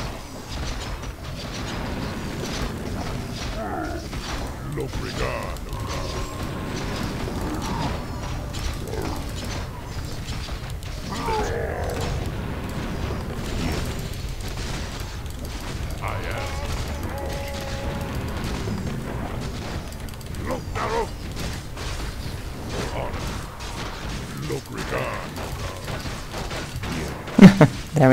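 Swords clash and spells burst in a noisy fantasy battle.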